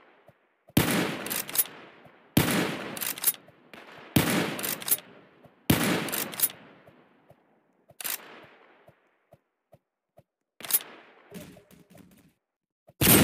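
A shotgun's pump clacks after each shot.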